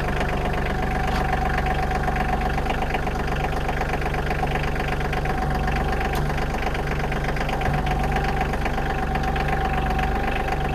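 A tractor's hydraulics whine as the loader bucket rises.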